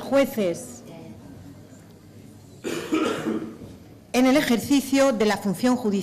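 A woman speaks formally into a microphone, reading out.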